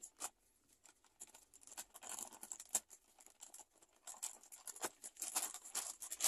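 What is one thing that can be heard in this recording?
Scissors snip through a plastic wrapper.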